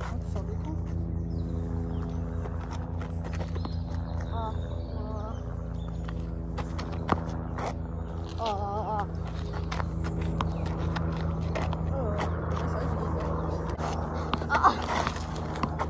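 A tennis ball bounces on hard ground.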